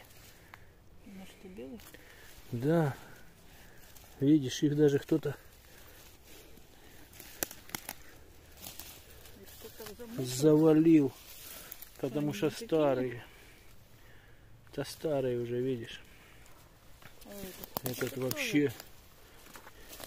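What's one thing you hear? Dry leaves and twigs rustle underfoot.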